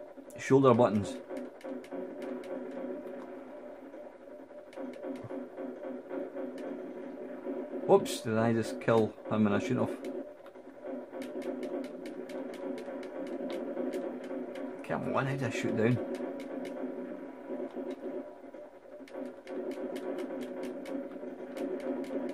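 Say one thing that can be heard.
Rapid video game gunfire crackles.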